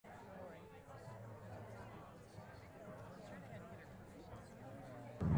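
A seated crowd of men and women murmurs and chatters quietly.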